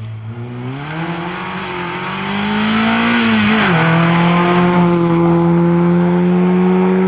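Tyres hiss on the road as the car passes.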